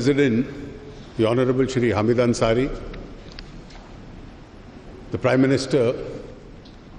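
An older man speaks slowly and formally into a microphone, with pauses.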